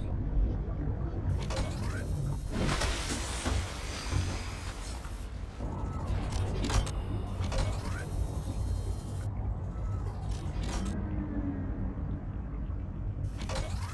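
Water sloshes and bubbles around a swimmer underwater.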